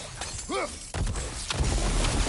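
A magic orb bursts with a sparkling crackle.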